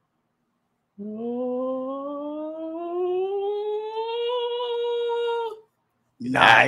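A man lets out a long, slowly rising sung note.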